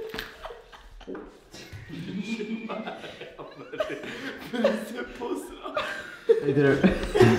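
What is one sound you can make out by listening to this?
A young man laughs and talks loudly close by.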